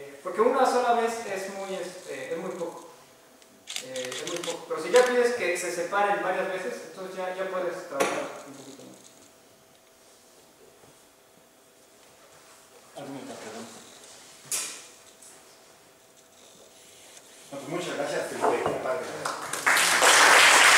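A young man speaks calmly to an audience in a room with a slight echo.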